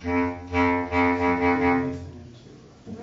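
A bass clarinet plays short pulsing low notes.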